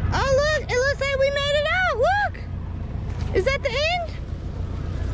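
A toddler babbles and squeals in a high, sing-song voice close by.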